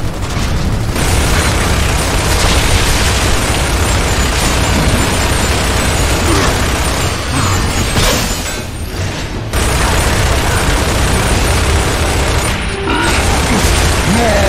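Heavy gunfire rattles in rapid bursts.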